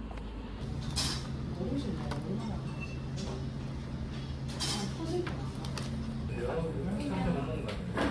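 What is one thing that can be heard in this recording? Stiff menu pages rustle and flip.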